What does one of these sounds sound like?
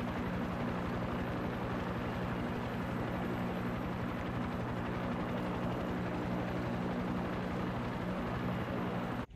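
A helicopter's rotor thumps steadily with a loud engine drone.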